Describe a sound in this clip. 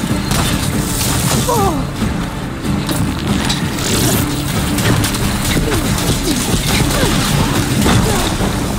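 Electricity crackles and zaps loudly.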